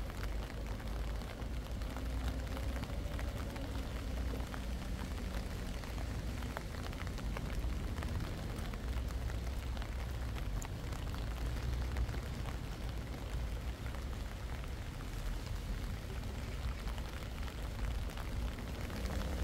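Light rain patters steadily on a wet path outdoors.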